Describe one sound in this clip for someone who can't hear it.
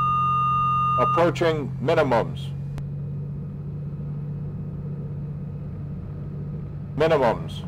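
A man speaks briefly through a headset intercom.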